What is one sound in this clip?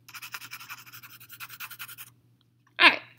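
A coloured pencil scratches rapidly across paper.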